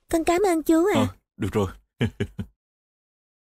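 A young girl speaks brightly and clearly, close by.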